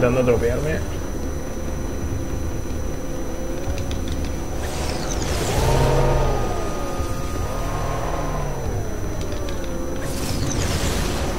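A hovering vehicle's engine hums, rising and falling in pitch.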